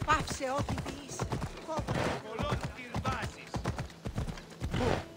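Horse hooves clatter on stone at a steady gallop.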